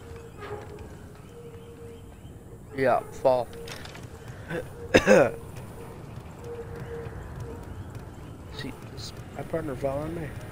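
Footsteps clank on the rungs of a metal ladder.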